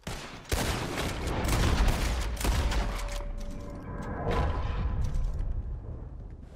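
Gunshots crack loudly and echo, one after another.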